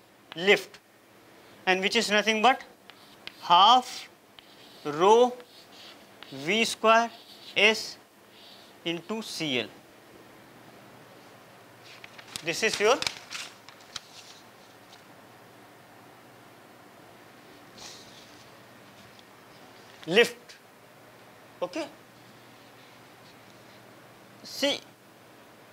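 A young man speaks calmly, pausing often.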